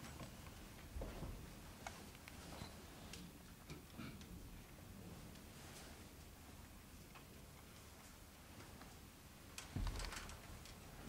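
Bare feet thud and shuffle on a floor.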